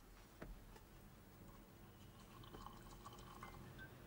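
Tea pours into a cup.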